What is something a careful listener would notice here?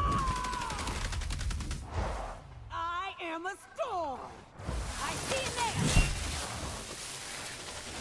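A large creature roars.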